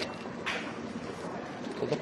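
Plastic wrapping crinkles in a man's hands.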